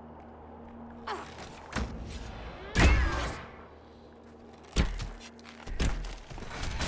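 Weapons clash and magic blasts burst in a fight.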